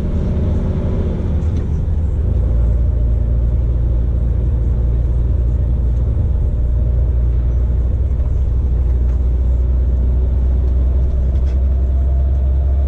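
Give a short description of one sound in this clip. A truck's diesel engine drones steadily from inside the cab.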